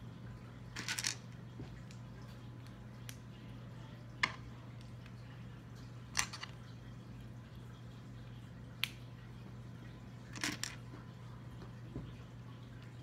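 Small plastic toy pieces click and snap together close by.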